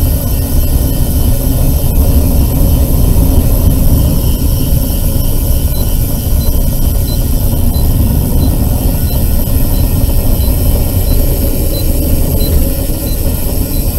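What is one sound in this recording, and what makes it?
Tyres roll over an asphalt road.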